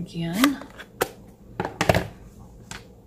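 A plastic ink pad clacks down on a hard surface.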